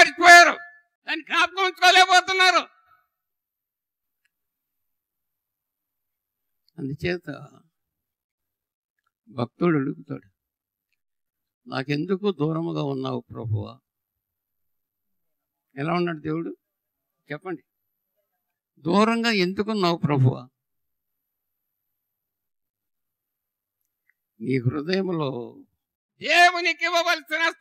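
An elderly man preaches with animation into a microphone, pausing often.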